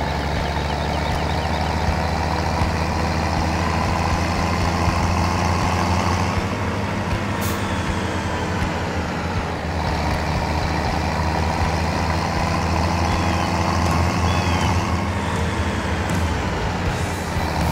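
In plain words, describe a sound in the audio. A trailer rattles over rough ground.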